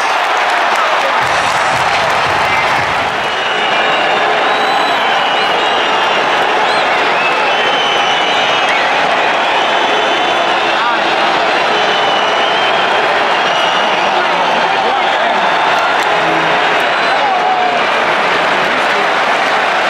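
A large stadium crowd roars and cheers loudly all around.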